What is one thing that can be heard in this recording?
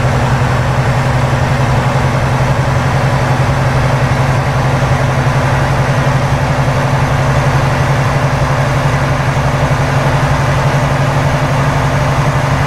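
Tyres roll over the road with a steady rushing noise.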